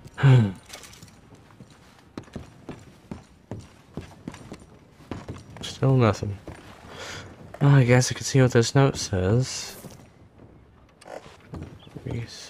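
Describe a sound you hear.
Footsteps thud on wooden stairs and floorboards.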